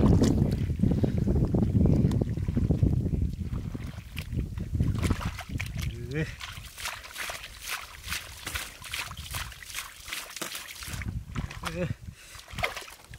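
Fish splash and thrash in shallow muddy water.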